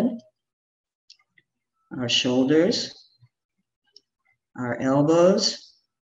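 A middle-aged woman speaks calmly and clearly into a nearby microphone, in short phrases.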